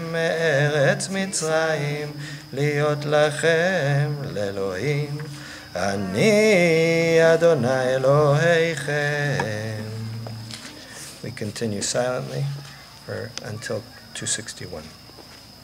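A man chants in a steady, melodic voice through a microphone.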